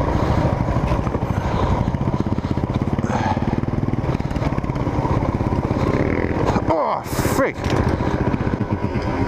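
A dirt bike engine revs and putters loudly up close.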